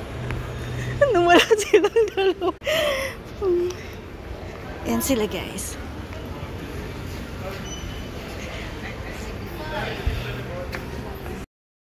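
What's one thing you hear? A middle-aged woman talks with animation close to a phone microphone.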